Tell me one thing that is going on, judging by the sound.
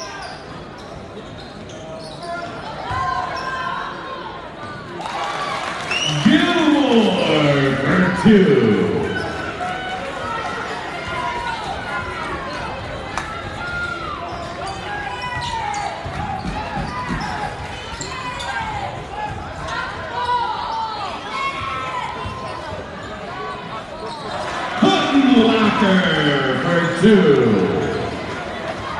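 A crowd chatters throughout a large echoing gym.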